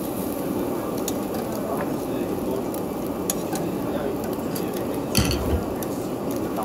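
Metal tongs click against a wire grill grate.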